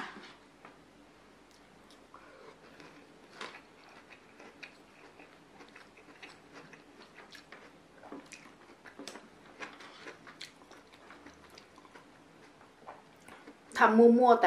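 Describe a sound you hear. A fork scrapes and clinks on a plate of food.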